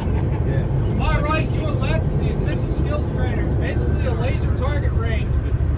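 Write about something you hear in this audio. A man speaks aloud to a group in a bus.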